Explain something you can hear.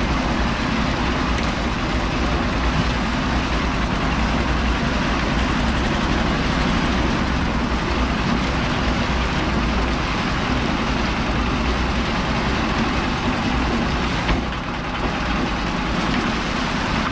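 A small engine drones loudly close by.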